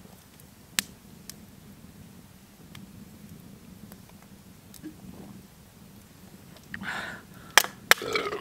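A fire crackles and pops.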